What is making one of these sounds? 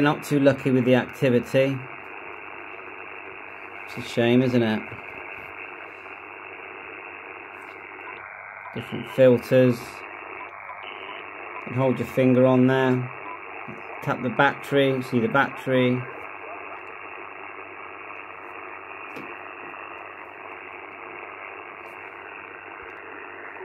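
Radio static hisses steadily from a small loudspeaker.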